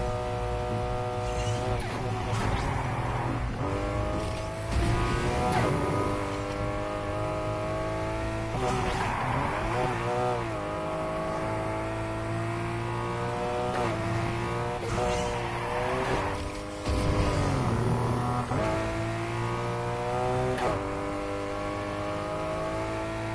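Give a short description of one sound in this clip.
A car engine roars at high revs, rising in pitch and dropping sharply with each gear shift.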